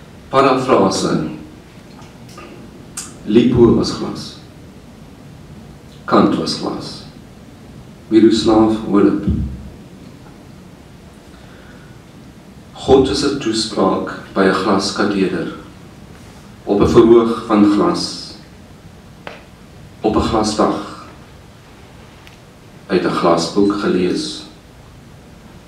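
A middle-aged man reads out slowly and clearly into a microphone, with pauses between lines.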